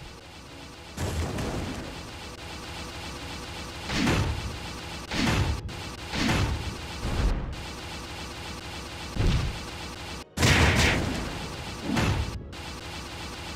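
Fiery magic blasts burst again and again.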